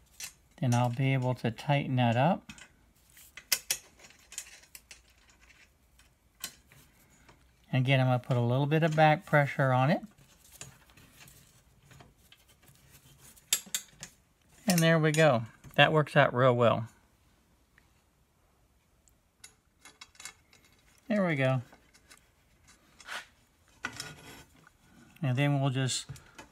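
A thin strip scrapes and clicks as it is pressed into a metal rail.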